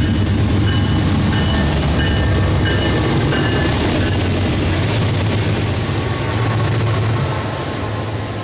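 Diesel locomotives rumble loudly close by.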